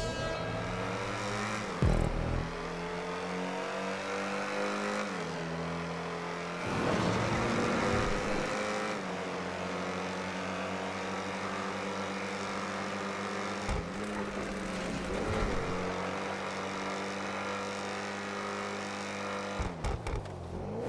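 A car engine roars steadily at high revs, shifting pitch now and then.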